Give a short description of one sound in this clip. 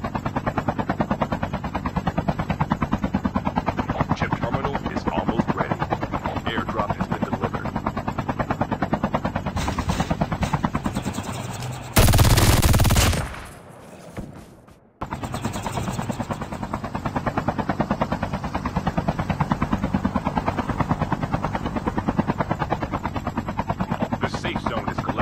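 A helicopter's rotor thumps in a fast, steady beat.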